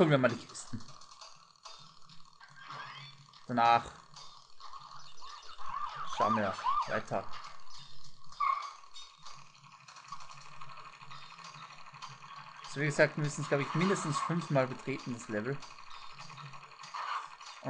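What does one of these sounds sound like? A cartoon motorbike engine hums steadily.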